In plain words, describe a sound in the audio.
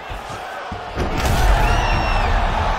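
A body slams heavily onto a mat.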